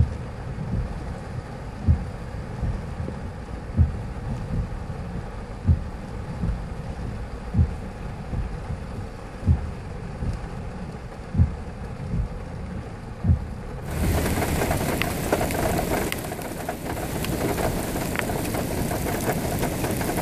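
Rough waves crash and surge against the shore.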